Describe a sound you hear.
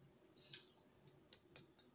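A knife scrapes against bread.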